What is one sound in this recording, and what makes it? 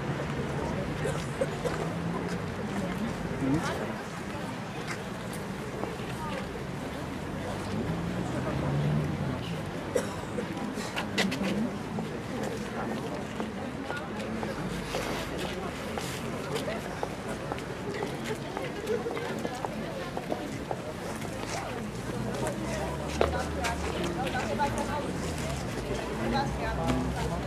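Footsteps march across paving outdoors.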